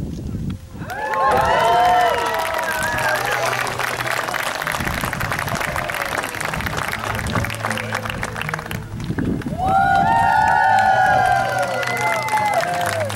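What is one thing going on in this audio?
Guests cheer and whoop.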